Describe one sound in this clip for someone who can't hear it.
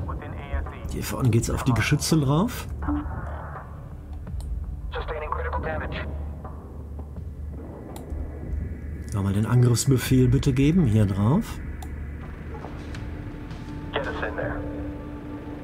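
A middle-aged man talks calmly and close to a microphone.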